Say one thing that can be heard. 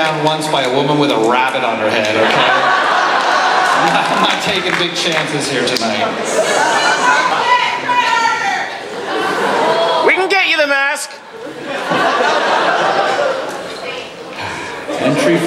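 A man speaks theatrically into a microphone over a loudspeaker in a large hall.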